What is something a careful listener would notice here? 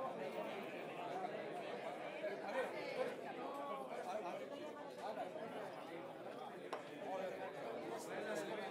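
A saxophone plays.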